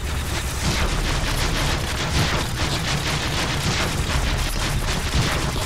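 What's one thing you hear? Energy blasts zap and explode.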